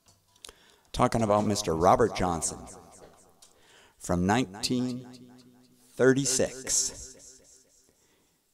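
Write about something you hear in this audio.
A resonator guitar is plucked and strummed.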